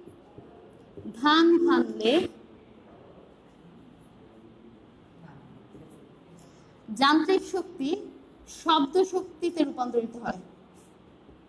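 A woman speaks clearly nearby.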